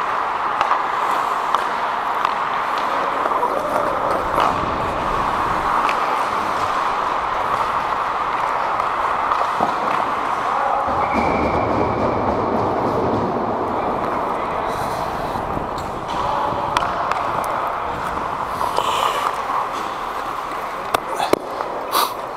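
Hockey sticks clack against pucks with sharp knocks in a large echoing rink.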